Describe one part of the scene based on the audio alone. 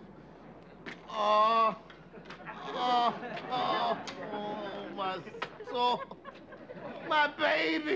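A middle-aged man talks loudly and with animation, close by.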